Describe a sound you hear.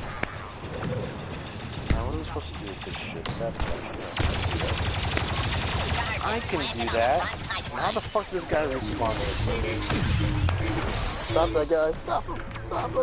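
Video game blasters fire in bursts amid battle noise.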